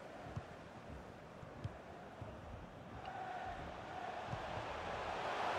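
A stadium crowd roars steadily and swells louder.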